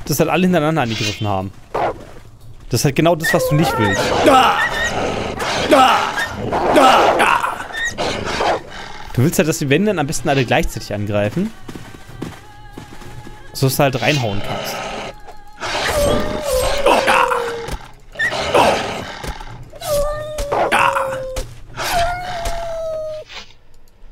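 A sword swishes and strikes.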